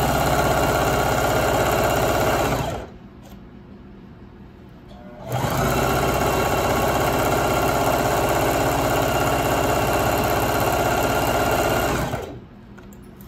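A sewing machine whirs steadily as it stitches, stopping and starting.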